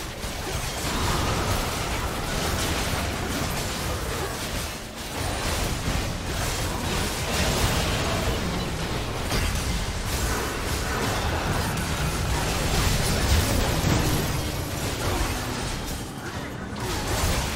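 Game battle effects crackle, whoosh and boom without pause.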